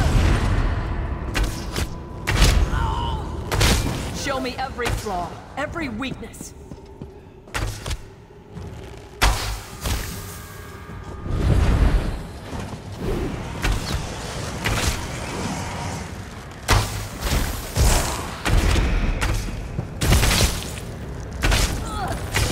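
Game bows twang as arrows are loosed.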